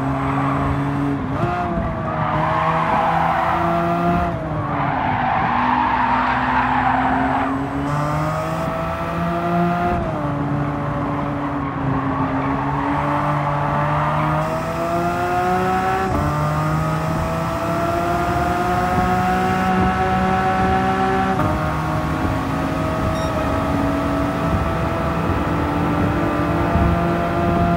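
A racing car engine roars and revs through gear changes.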